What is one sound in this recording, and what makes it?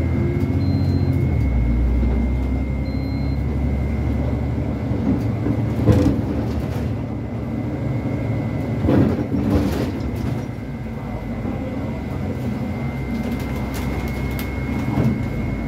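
Bus panels and fittings rattle and clatter as the bus moves.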